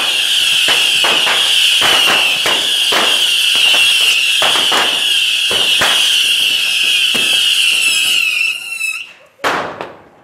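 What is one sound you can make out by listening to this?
Firecrackers pop and bang rapidly nearby.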